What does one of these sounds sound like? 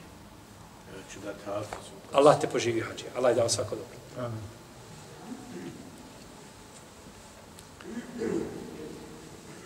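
A middle-aged man speaks with animation into a close microphone, pausing between phrases.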